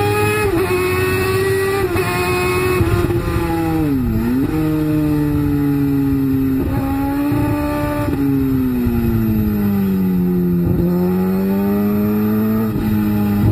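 A motorcycle engine roars steadily, its pitch dropping and rising with gear changes.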